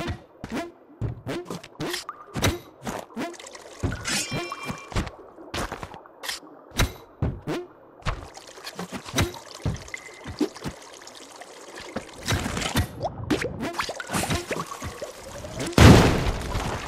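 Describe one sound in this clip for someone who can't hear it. Short video game sound effects click and thump.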